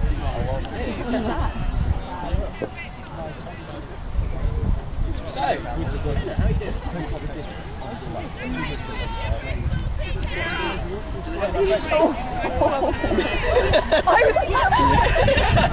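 Young men shout to each other in the distance.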